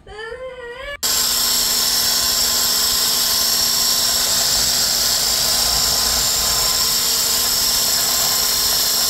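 An immersion blender runs in batter in a plastic bowl.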